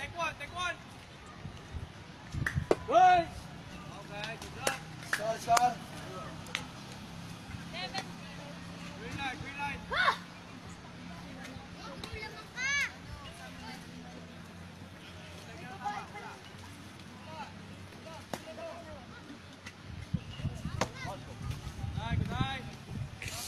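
Young players shout and cheer from across an open field.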